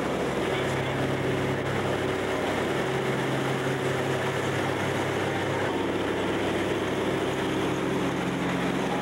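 An aircraft engine drones loudly and steadily.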